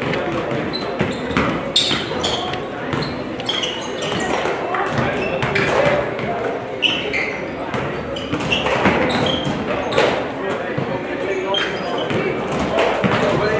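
Basketballs bounce repeatedly on a hardwood floor in a large echoing gym.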